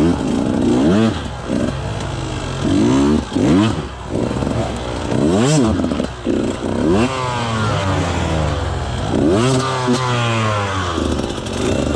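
Tyres skid and scrabble on loose dirt and twigs.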